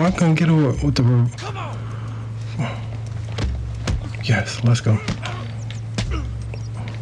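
Fists thud against bodies in heavy punches.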